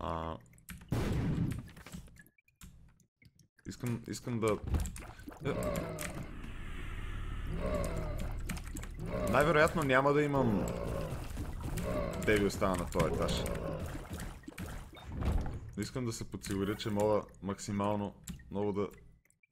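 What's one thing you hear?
Game sound effects of shots and splatters play.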